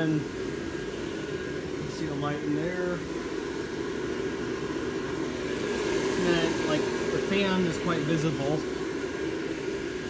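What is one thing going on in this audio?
A blower fan hums steadily, inflating an air-filled decoration.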